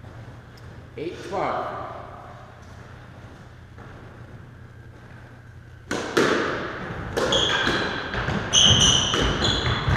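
A squash ball smacks off rackets and walls, echoing in a hard-walled court.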